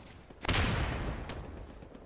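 A grenade is tossed with a soft whoosh.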